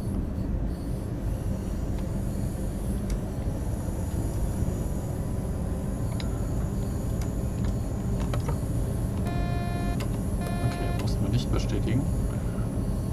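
A diesel railcar rumbles along the track.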